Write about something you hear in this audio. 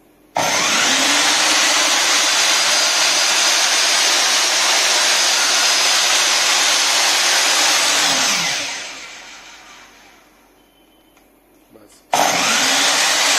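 A miter saw motor whirs loudly at high speed, then winds down.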